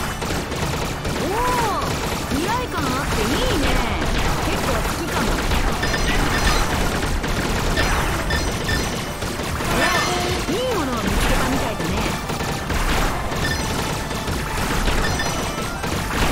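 Fast electronic music with a heavy beat plays throughout.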